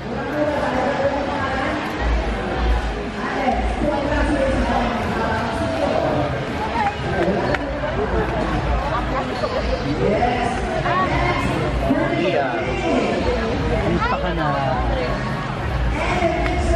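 A crowd of people chatter all around in a busy indoor space.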